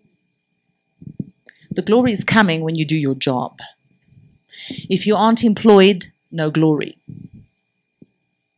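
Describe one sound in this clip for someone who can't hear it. A middle-aged woman speaks animatedly into a microphone.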